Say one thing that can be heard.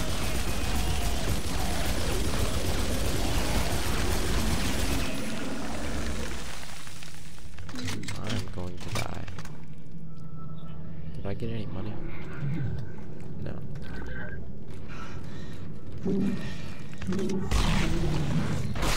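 A plasma weapon fires in rapid bursts, with a loud crackling buzz.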